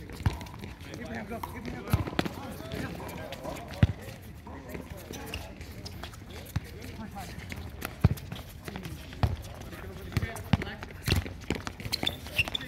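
A ball is kicked with dull thuds on a hard court.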